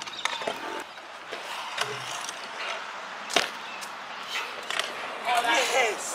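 Scooter wheels roll and rattle on concrete.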